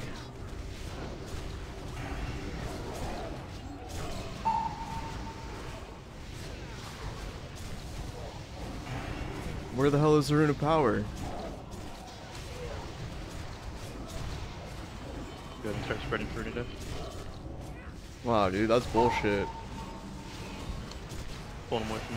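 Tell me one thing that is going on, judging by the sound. Game spells whoosh and clash in battle.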